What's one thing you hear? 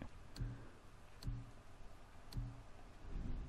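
Soft menu clicks sound a few times.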